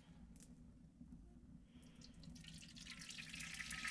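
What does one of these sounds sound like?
Liquid pours from a jug into a hot pan.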